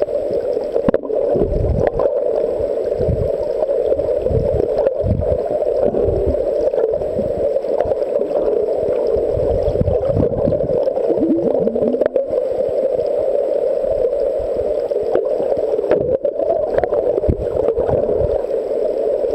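Water rumbles and hisses steadily underwater.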